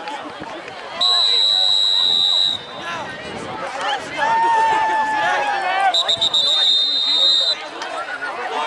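A referee blows a whistle in long shrill blasts.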